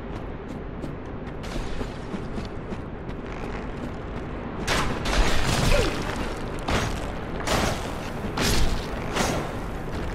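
Footsteps crunch on rough ground in a game.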